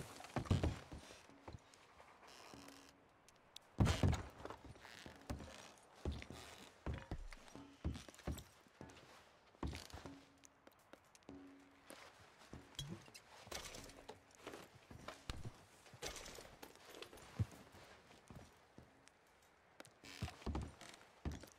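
Boots thud and creak on wooden floorboards.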